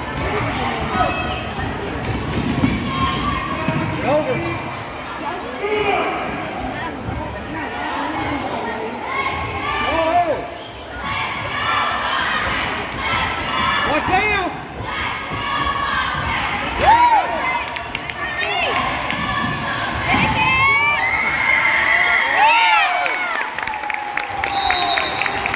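A crowd of spectators chatters and calls out in an echoing hall.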